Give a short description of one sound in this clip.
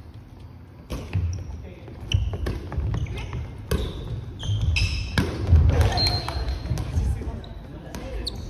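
Young women shout and cheer with excitement.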